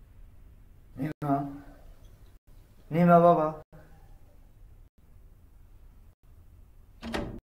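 An elderly man calls out through a closed door.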